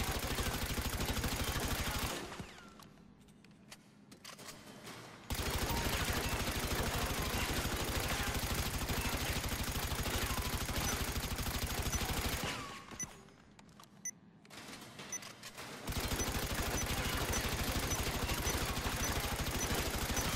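Rapid gunshots ring out in fast bursts.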